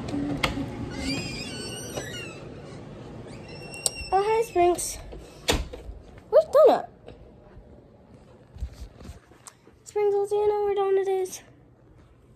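A young girl speaks and sings close to a phone's microphone.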